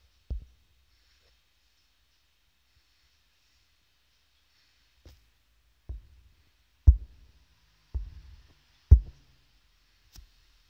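Deep menu thumps sound now and then as the game's menus change.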